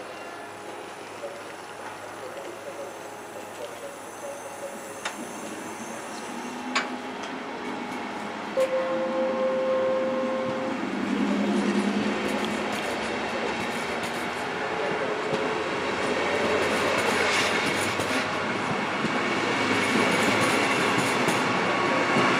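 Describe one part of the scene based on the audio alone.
A passenger train pulls past at low speed, its wheels rumbling on the rails.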